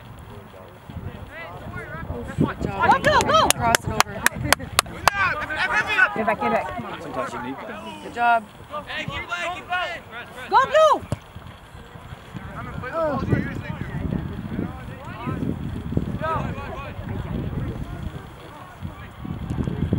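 Young men shout to one another across an open field outdoors.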